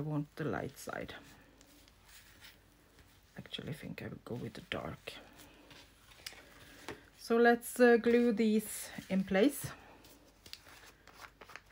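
Stiff paper rustles as a page is turned over.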